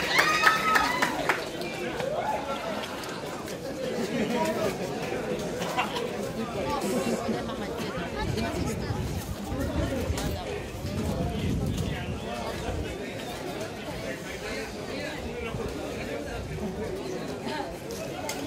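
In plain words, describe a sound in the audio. A large outdoor crowd of men and women chatters and calls out loudly.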